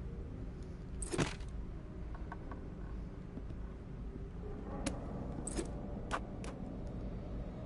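Footsteps knock on a wooden floor indoors.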